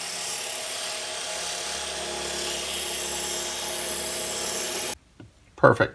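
A small rotary tool whines at high speed as it grinds into a wooden dowel.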